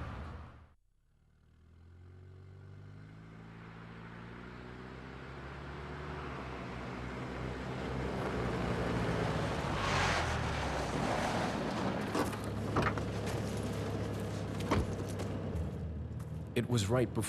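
A car engine rumbles closer and grows louder.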